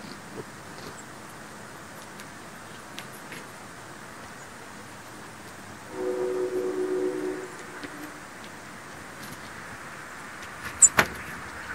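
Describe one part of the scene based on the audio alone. Small birds peck softly at snow-covered wood.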